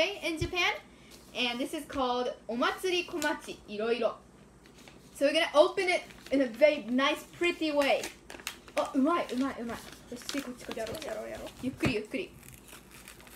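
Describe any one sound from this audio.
Teenage girls talk with animation close by.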